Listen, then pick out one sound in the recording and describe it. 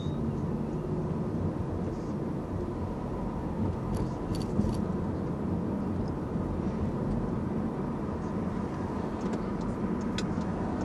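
Tyres roll over the road with a low rumble.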